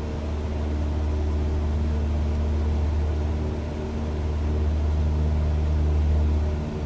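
A small propeller plane's engine drones steadily from inside the cabin.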